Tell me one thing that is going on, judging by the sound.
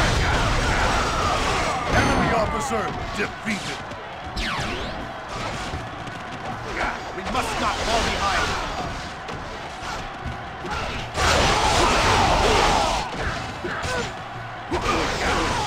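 Metal blades clash and strike repeatedly in a fight.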